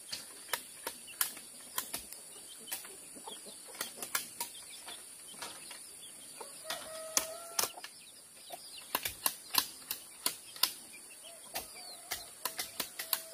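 A knife splits and scrapes bamboo strips with sharp cracks and clicks.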